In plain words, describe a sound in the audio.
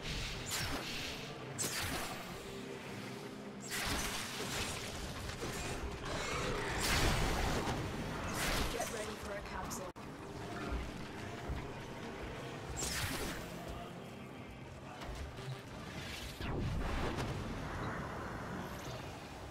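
Weapons fire and energy blasts burst again and again.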